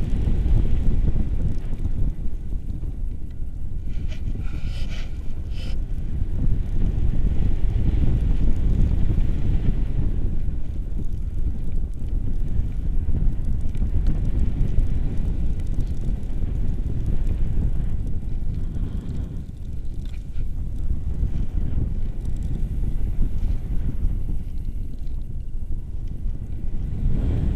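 Strong wind roars and buffets loudly outdoors.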